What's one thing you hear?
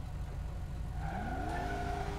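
A car engine revs up.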